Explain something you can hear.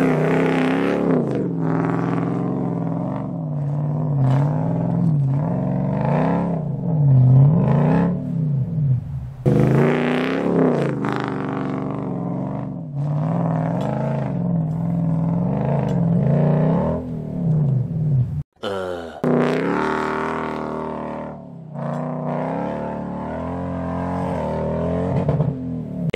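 A heavy engine revs and labours, rising and falling in pitch.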